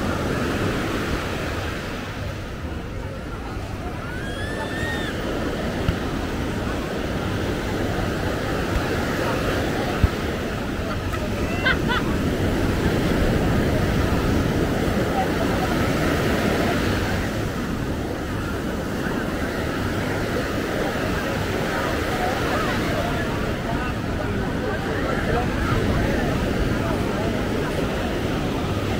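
A crowd of beachgoers chatters at a distance.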